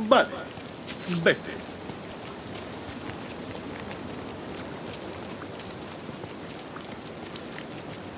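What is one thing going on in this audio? Footsteps run over sand.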